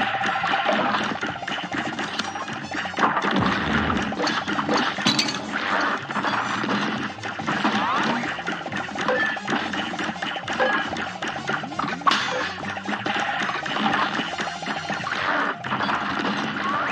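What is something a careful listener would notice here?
Lively orchestral game music plays throughout.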